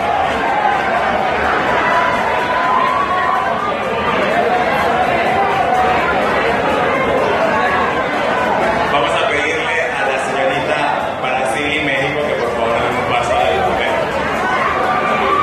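Music plays loudly through loudspeakers.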